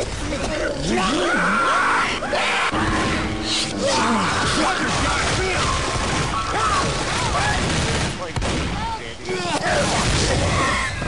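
Claws slash and strike over and over.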